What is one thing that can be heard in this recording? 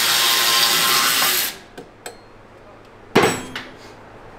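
Metal parts clank and knock.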